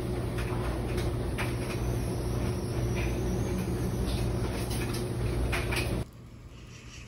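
Clothes rustle as a woman pulls them from a dryer drum.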